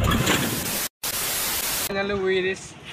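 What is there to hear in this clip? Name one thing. Loud static hisses.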